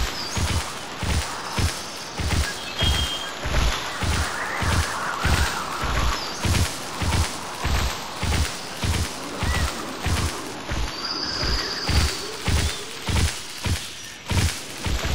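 Heavy footsteps thud steadily as a large creature walks.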